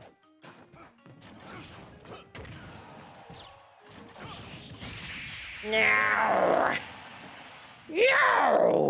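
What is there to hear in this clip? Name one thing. Video game fighting sounds clash and whoosh.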